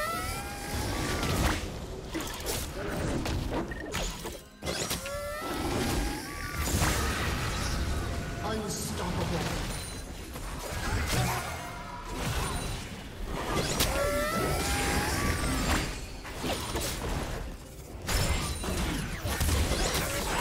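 Game spell effects and combat sounds crackle and whoosh throughout.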